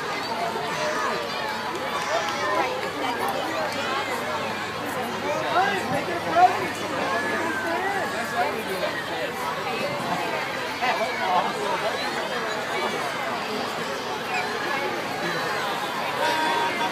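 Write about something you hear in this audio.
A large outdoor crowd chatters and calls out nearby.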